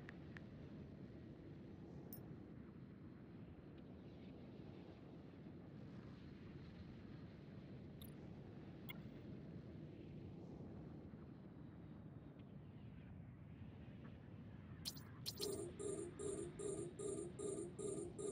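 A spaceship engine hums low and steady.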